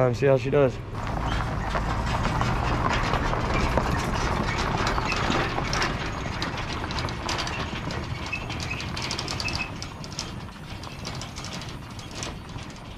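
A vehicle engine drives away over gravel and slowly fades.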